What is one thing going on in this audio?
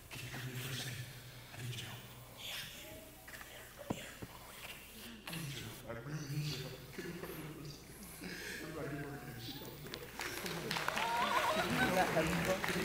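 A man speaks animatedly through a microphone in a large echoing hall.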